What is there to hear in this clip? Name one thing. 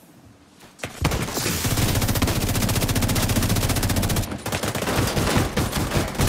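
An automatic rifle fires in rapid, loud bursts.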